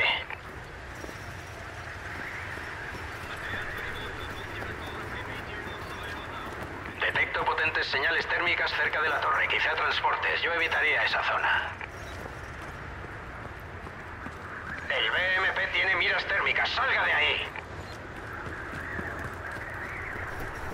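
Wind howls steadily through a snowstorm.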